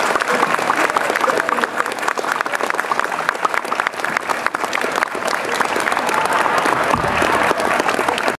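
A large crowd applauds steadily outdoors.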